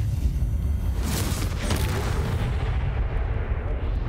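A heavy blast bursts with scattering debris.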